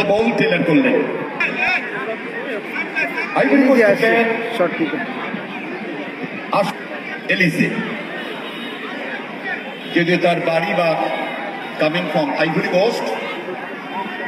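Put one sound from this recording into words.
Men in the crowd shout and cheer now and then.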